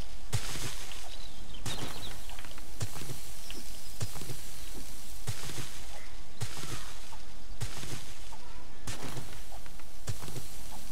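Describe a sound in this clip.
A shovel digs into dirt and rocks with repeated scraping thuds.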